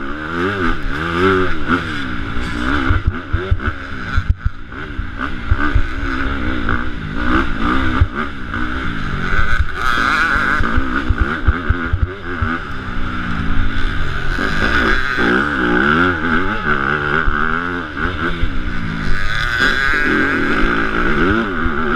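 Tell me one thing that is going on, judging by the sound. A motorcycle engine revs hard and roars up and down close by.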